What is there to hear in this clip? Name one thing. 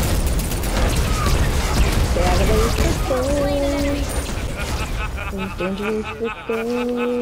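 Fiery explosions roar and crackle.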